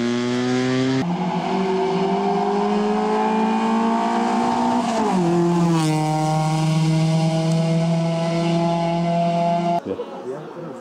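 A rally car engine roars loudly as the car speeds past and its pitch drops.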